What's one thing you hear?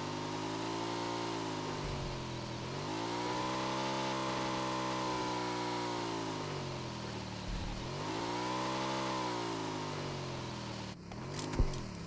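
A motorbike engine hums and revs as it rides.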